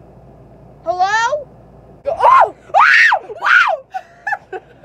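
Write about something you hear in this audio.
A young woman shrieks loudly.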